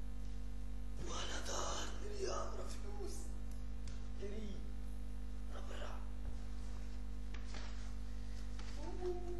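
Clothes and things on a bed rustle as someone rummages through them.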